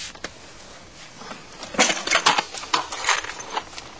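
Tools clatter in a metal box.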